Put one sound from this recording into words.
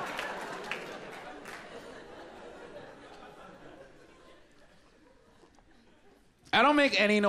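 An audience laughs and cheers in a large hall, fading away.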